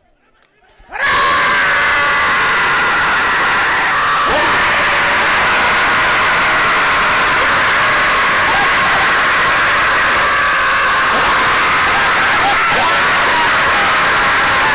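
A large crowd cheers and shouts loudly outdoors.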